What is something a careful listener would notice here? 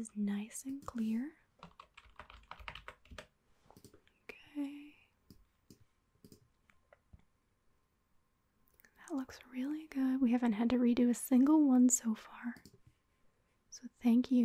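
A young woman speaks or sings into a microphone, heard close and clear.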